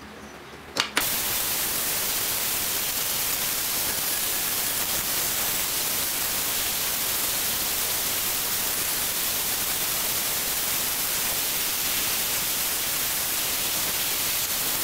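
A belt sander grinds metal with a steady, loud hiss.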